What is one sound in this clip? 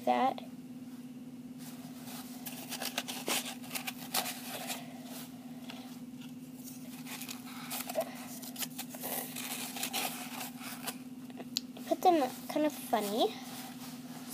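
A small pet squeaks in short, high bursts.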